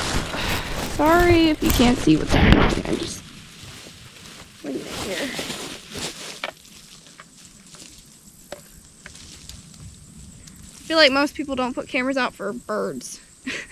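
A young woman talks close by, calmly.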